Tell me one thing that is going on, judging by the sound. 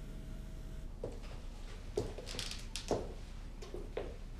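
Footsteps walk slowly across a floor indoors.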